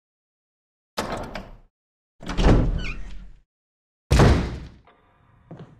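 A heavy wooden door creaks and swings open slowly.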